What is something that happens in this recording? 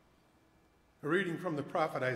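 An elderly man speaks calmly into a microphone in a large echoing room.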